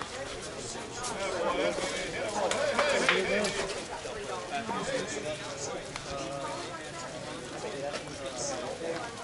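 Several people chatter and talk at a distance outdoors.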